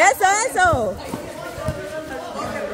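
A ball is kicked on a hard floor.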